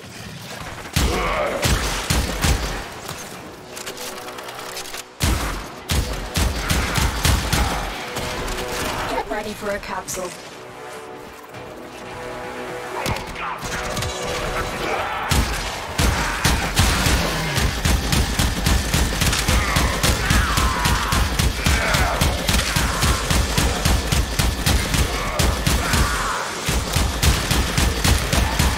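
Guns fire in fast, rapid bursts.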